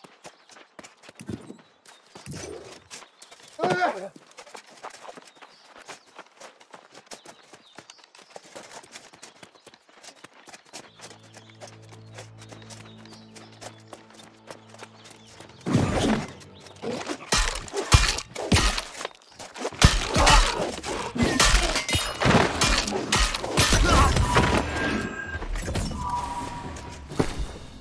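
Armoured footsteps crunch over stone.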